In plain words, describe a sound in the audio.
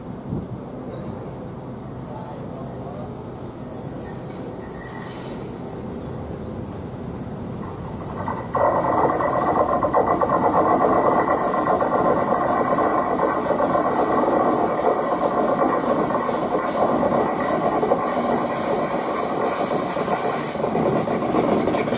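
A Class 50 diesel locomotive approaches, its engine growing louder as it nears.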